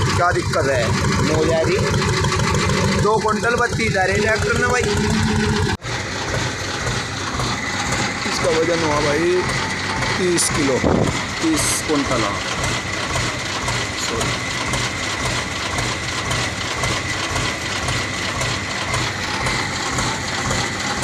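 A tractor engine idles with a steady, low chugging throb.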